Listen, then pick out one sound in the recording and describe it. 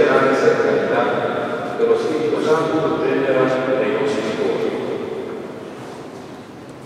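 Organ music rings out in a large echoing hall and slowly fades away.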